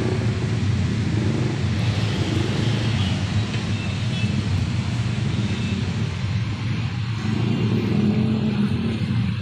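Motorbikes putter past on a street outdoors.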